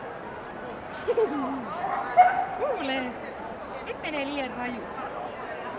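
A dog whines and yelps close by.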